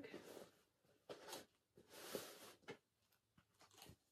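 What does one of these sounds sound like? Plastic packaging crinkles and rustles as it is opened.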